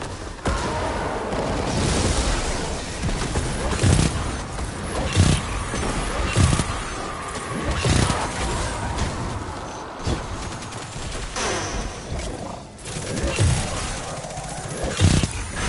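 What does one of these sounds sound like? Gunfire from a game rifle bangs repeatedly.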